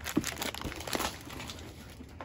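Sheets of card slide and rustle against a surface.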